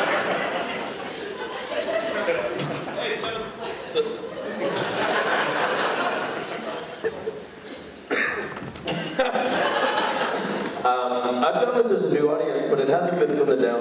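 A man speaks into a microphone, heard through loudspeakers in a large room.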